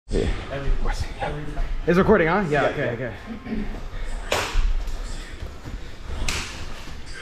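Bare feet thud and shuffle on a padded mat.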